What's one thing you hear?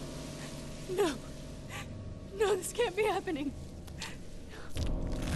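A young woman sobs and speaks in a distressed voice.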